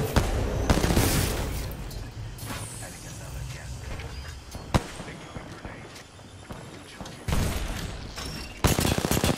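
Gunfire from a video game rattles loudly in rapid bursts.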